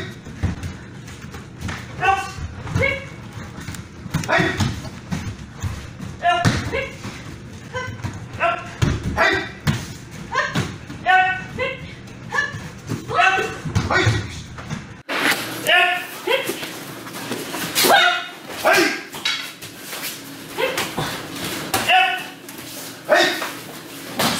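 Bare feet thump and slide on floor mats.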